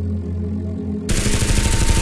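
Small propellers whir.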